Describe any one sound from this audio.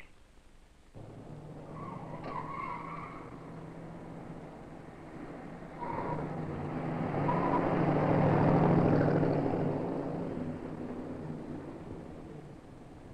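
A car engine hums as a car approaches, passes close by and fades away.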